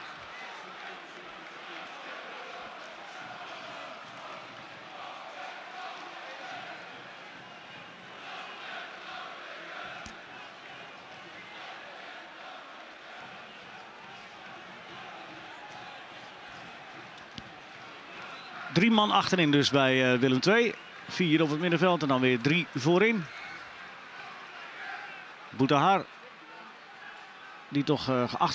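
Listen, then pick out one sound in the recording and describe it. A large stadium crowd murmurs and chants steadily in the distance.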